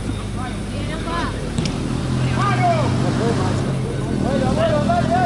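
Young men shout to each other outdoors during a game.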